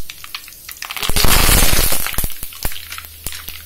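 Leaves drop into hot oil with a sudden loud hiss.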